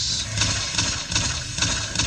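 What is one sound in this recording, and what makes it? Gunfire rings out.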